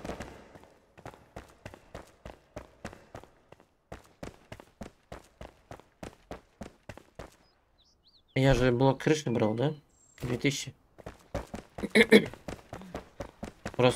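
Footsteps patter quickly on stone.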